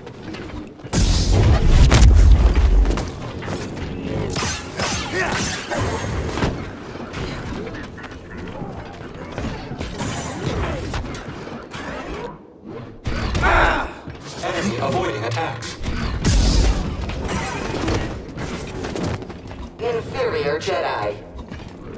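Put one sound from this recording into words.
A humming energy blade swings and clashes with loud crackles.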